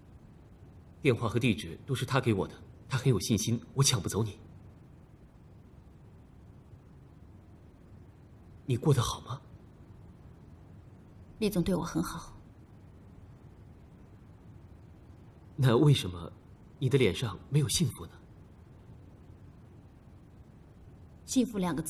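A young woman speaks quietly and calmly, close by.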